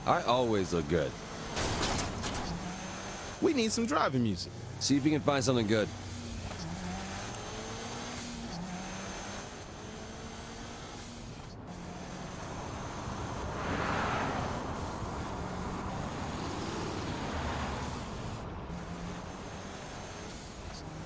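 A car engine hums steadily as the car speeds along.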